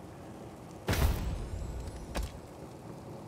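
A game interface clicks sharply.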